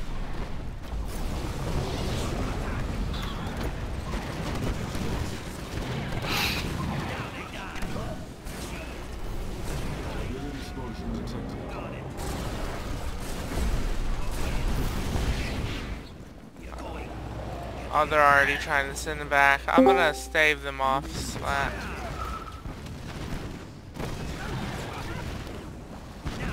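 Laser beams zap across a battlefield.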